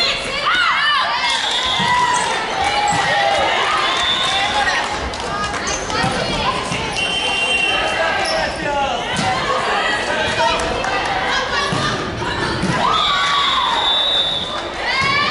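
Young girls shout and call out to each other.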